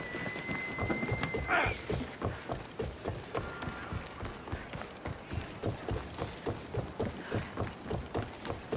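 Footsteps run quickly across sand and wooden planks.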